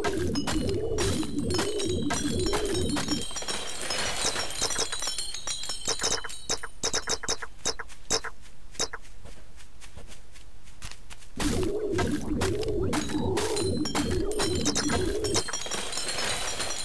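A laser tool whirs in pulsing bursts.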